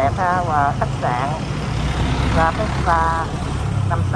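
A bus engine hums as the bus moves slowly past.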